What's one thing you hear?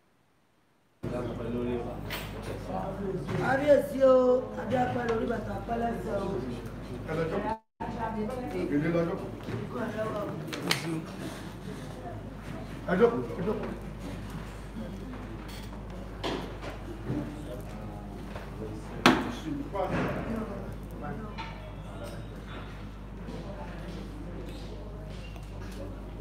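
Several men talk with one another nearby.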